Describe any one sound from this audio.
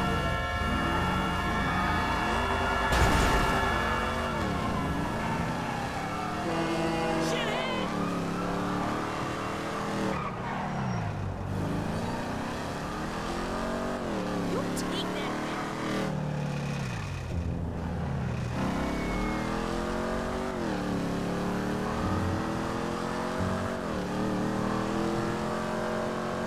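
A car engine revs hard, rising and dropping in pitch as the gears shift.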